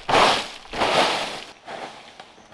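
Rubber boots crunch footsteps on dry leaf litter.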